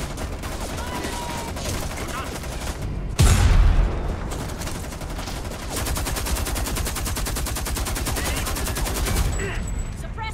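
A rifle fires rapid bursts close by.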